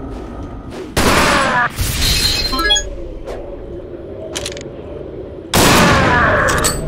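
A gunshot booms loudly and rings out.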